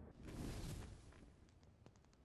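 Flames burst up with a loud whoosh.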